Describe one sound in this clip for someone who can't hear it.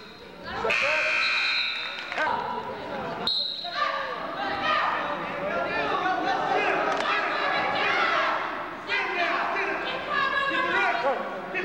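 A crowd of spectators shouts and cheers in an echoing gym.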